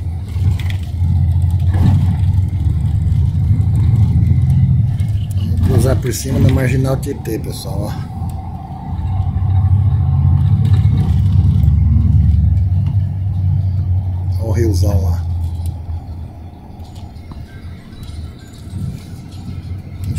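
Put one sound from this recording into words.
A vehicle's engine rumbles steadily from inside as it drives along.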